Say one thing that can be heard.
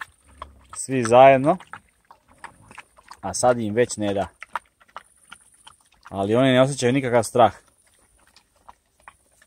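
A dog chews and licks food.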